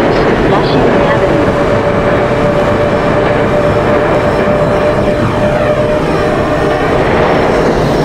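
A train's motor whines with a steady tone.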